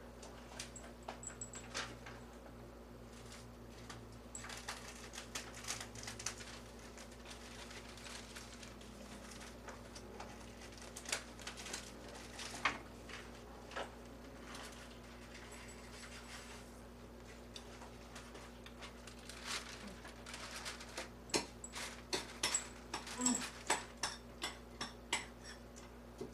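Dishes and utensils clatter and clink close by.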